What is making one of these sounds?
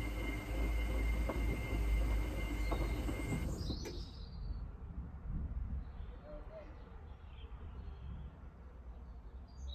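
Soapy water sloshes inside a washing machine drum.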